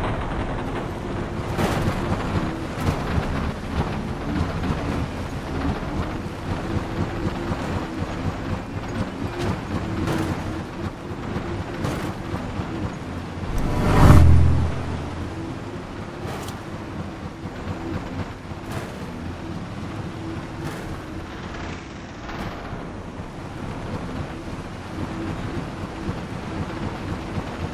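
A hovering engine hums steadily.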